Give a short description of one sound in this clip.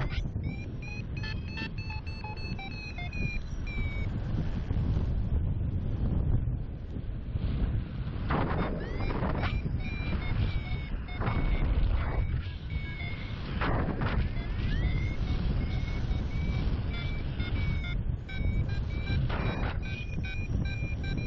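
Wind buffets and roars loudly over the microphone.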